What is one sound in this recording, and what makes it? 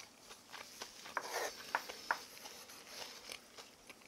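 A spoon clinks against a wooden bowl.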